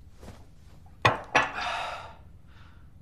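A young man drinks from a mug with gulping sounds.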